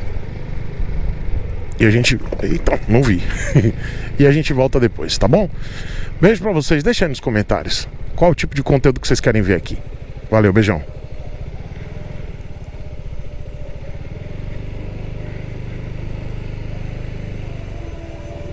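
A motorcycle engine hums low and steady while riding slowly.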